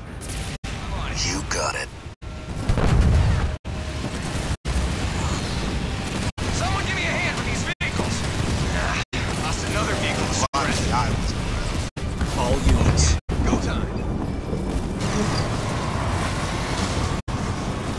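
Weapons fire and energy beams crackle in a battle.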